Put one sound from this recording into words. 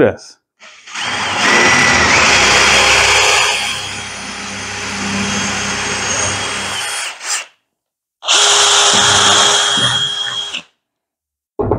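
A cordless drill whirs as it bores into wood.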